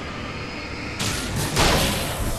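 A shotgun fires loudly.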